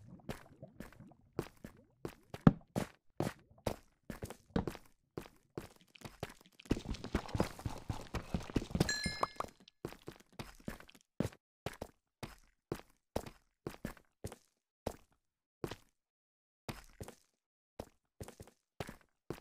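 Footsteps crunch on stone at a steady walking pace.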